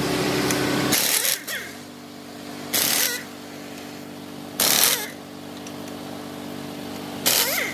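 An air impact wrench rattles in short, loud bursts.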